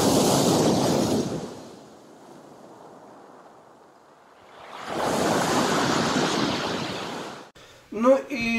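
Waves crash and splash against a pier on a pebble shore.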